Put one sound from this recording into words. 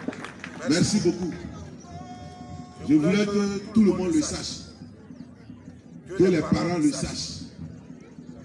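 A man speaks loudly through a microphone and loudspeaker outdoors, in short phrases with pauses.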